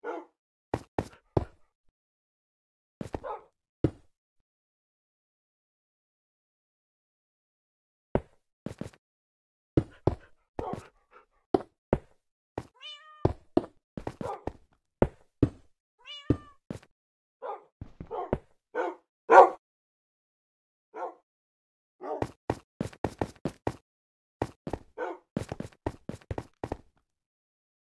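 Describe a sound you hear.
Stone blocks crack and break in quick knocks.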